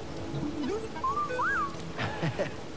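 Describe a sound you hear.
A small robot chirps and beeps in rising tones.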